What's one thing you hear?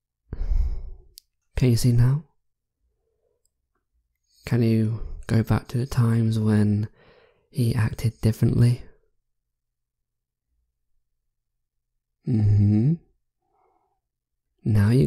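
A young man speaks softly and closely into a microphone, in short phrases with pauses.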